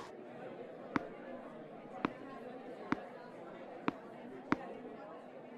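A tennis ball bounces on a hard court several times.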